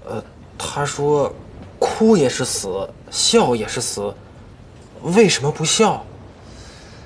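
A young man speaks tensely and quietly, close by.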